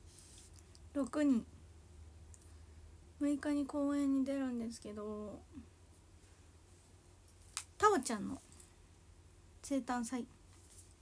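A young woman speaks softly in short phrases close by.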